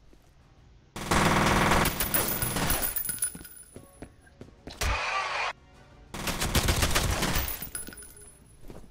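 Gunfire bursts loudly in rapid shots.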